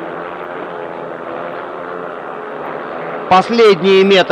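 Motorcycle engines roar and whine.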